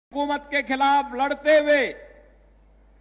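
A man speaks forcefully into a microphone over a loudspeaker.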